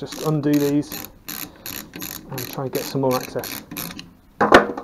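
A ratchet wrench clicks rapidly.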